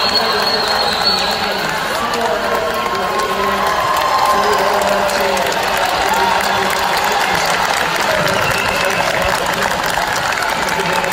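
A large crowd cheers and shouts loudly in an echoing indoor hall.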